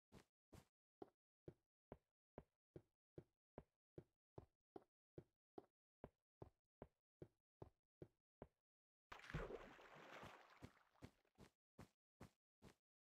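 Footsteps crunch steadily in a quick, even rhythm.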